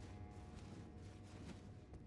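Hands and feet knock on a wooden ladder.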